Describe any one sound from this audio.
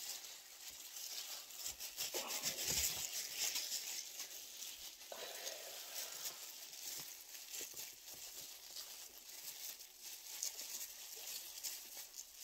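Wet hair squelches as hands work dye through it.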